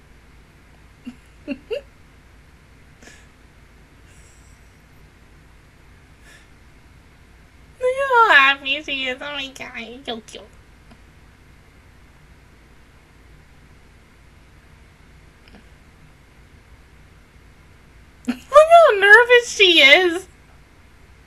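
A young woman laughs loudly in bursts, close to a microphone.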